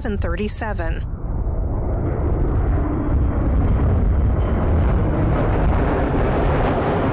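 An air tanker's engines roar loudly as it flies low overhead.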